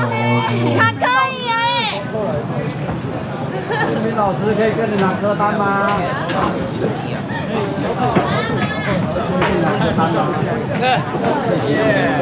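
Several people chatter nearby.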